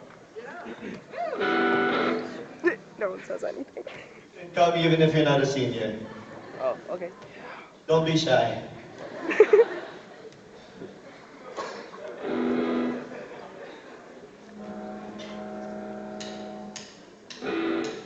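Electric guitars screech with feedback.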